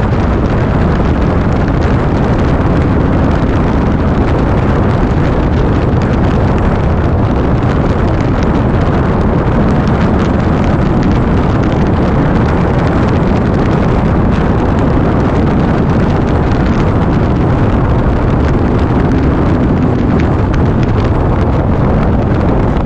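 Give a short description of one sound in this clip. Wind roars loudly against a rider's helmet.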